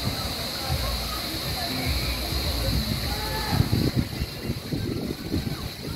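Swimmers splash gently in water.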